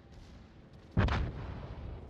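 Heavy guns fire with a loud boom.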